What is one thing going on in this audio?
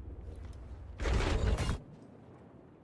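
A heavy curtain rustles as it is pushed aside.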